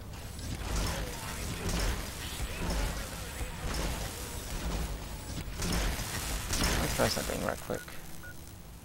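An energy weapon fires with a loud buzzing crackle.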